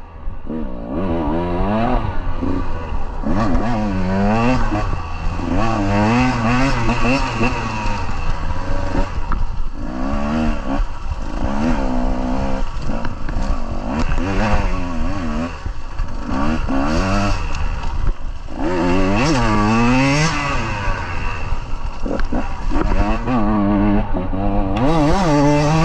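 Dry leaves crunch and rustle under tyres.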